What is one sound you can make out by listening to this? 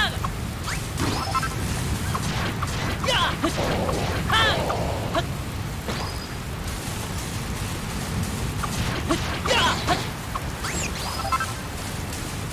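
Video game sword swings whoosh and strike enemies with sharp chimes.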